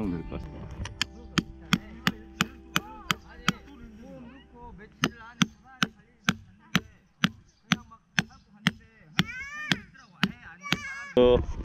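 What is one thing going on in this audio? A hammer strikes a metal tent peg with sharp, ringing blows at a steady pace.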